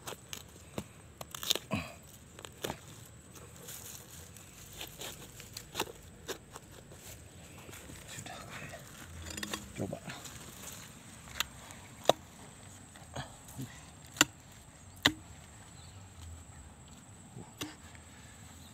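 A blade chops at woody roots in soil with sharp knocks.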